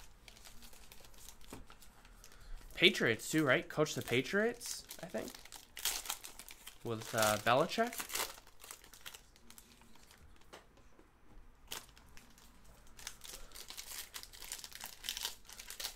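Foil wrappers crinkle and rustle in hands.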